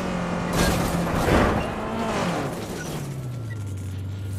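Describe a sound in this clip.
A car engine revs loudly.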